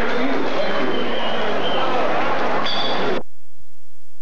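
A big band plays loud music.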